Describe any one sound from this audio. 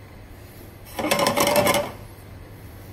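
A metal pan scrapes across a stove grate.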